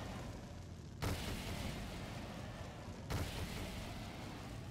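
A fire weapon in a game blasts with a loud whoosh.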